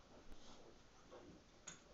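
A stringed instrument knocks lightly as a hand lifts it.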